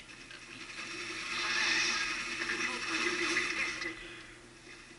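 Flames roar loudly from a game through speakers.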